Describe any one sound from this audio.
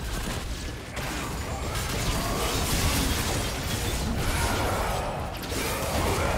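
Game spells whoosh and crackle in a busy fight.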